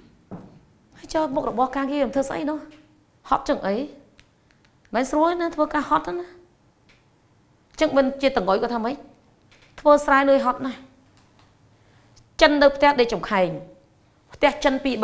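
A woman speaks clearly and calmly, as if teaching.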